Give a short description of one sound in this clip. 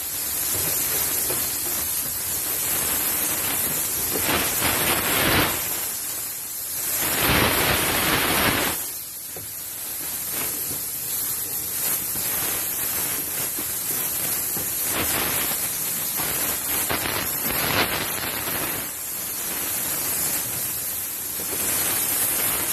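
A steam cleaner hisses loudly and steadily.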